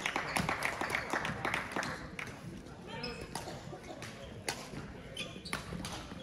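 Shuttlecocks are struck sharply with rackets, echoing in a large hall.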